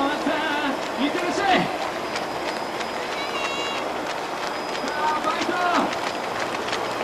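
A man at the roadside shouts encouragement nearby.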